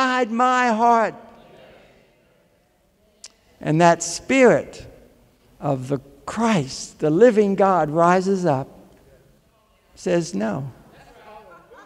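An elderly man speaks with animation through a microphone in a large echoing hall.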